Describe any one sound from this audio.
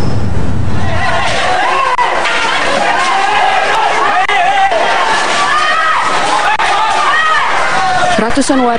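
A crowd shouts and yells outdoors.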